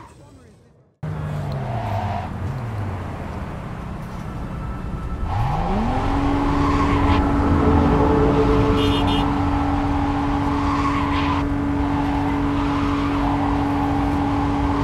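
A car engine roars and revs.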